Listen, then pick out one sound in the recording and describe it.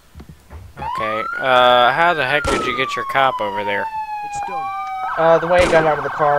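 A siren wails and rises and falls in pitch.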